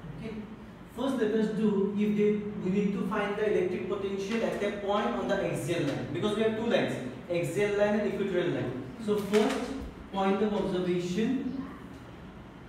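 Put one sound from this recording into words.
A young man speaks calmly and clearly, explaining.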